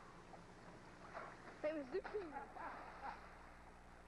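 Water splashes loudly as a person slides into a pool.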